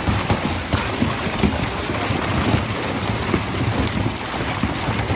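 Fish flap and slap wetly against each other in a net.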